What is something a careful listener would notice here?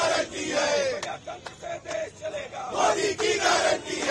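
Men clap their hands.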